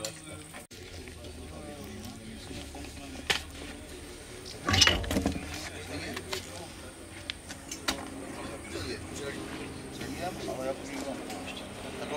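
Metal parts clank and knock on a car wheel.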